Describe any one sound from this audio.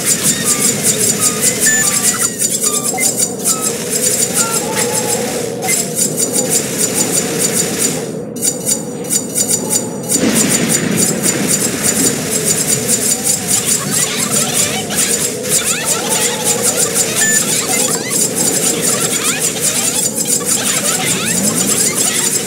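A spaceship's laser guns fire in a rapid, steady stream.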